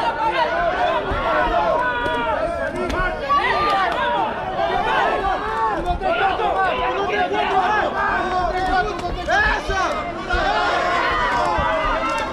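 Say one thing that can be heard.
A crowd of men and women shouts and cheers loudly outdoors.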